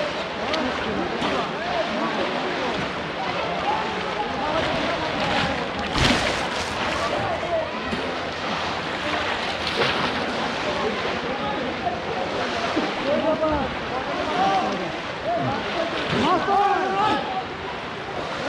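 A crowd of men and boys shout and call out all around, outdoors.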